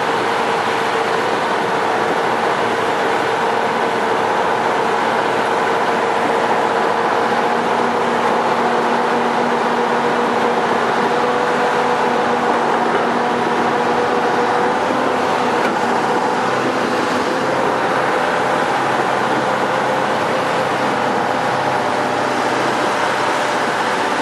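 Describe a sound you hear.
Water splashes and swirls around a vehicle's wheels.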